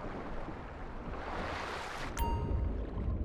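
Waves splash at the water's surface.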